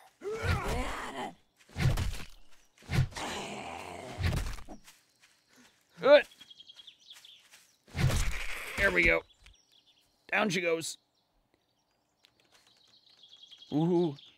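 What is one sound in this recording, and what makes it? A zombie groans and snarls up close.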